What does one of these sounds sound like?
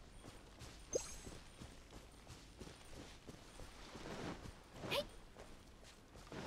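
Footsteps run quickly through tall grass.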